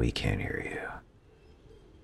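A pistol magazine clicks into place.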